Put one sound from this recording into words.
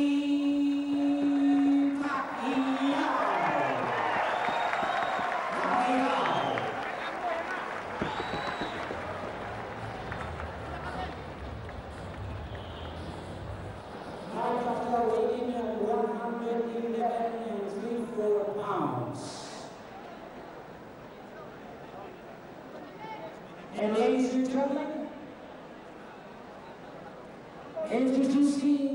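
A man announces loudly through a microphone in a large echoing arena.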